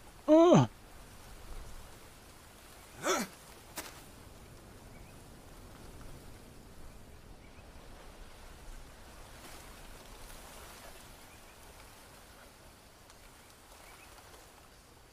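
Leaves rustle softly in a light breeze outdoors.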